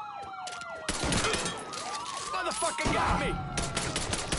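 Pistol shots ring out.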